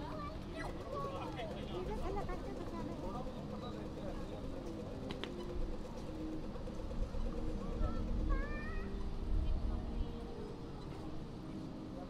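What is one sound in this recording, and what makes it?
Footsteps shuffle on paving.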